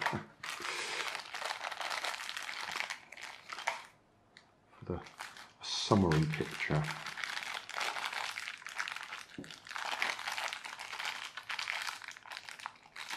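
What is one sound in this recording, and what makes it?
A small plastic bag crinkles as hands pull it open.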